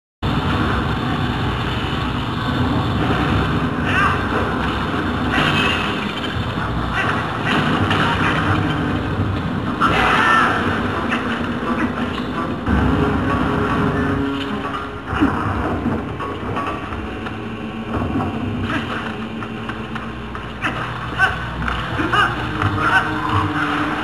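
Video game music and sound effects play through a television's speakers.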